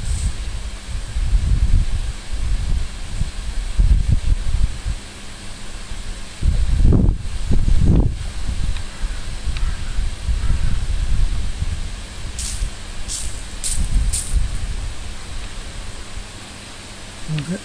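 Overhead misting sprinklers hiss as they spray a fine mist.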